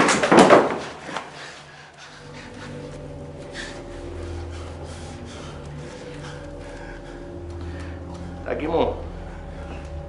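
An elderly man groans and cries out in pain.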